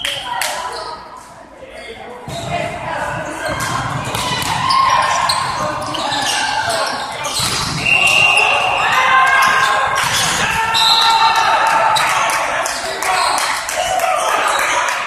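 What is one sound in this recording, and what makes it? A volleyball smacks off hands with sharp slaps.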